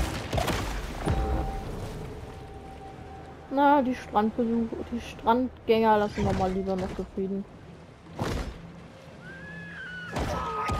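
Water splashes and swishes as a shark swims.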